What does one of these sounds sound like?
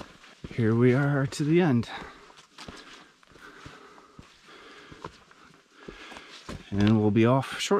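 Footsteps crunch on a rocky path.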